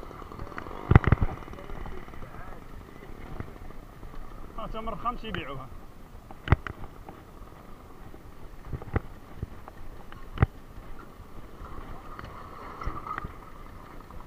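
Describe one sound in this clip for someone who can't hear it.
A bicycle rattles and clunks as it rides over bumpy dirt ground.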